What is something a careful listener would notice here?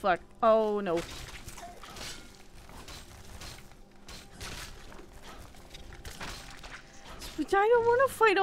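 Weapons strike and thud in a fight.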